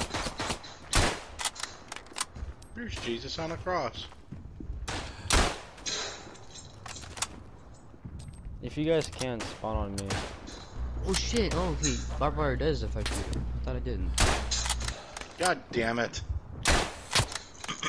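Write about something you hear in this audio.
A bolt-action rifle fires sharp shots.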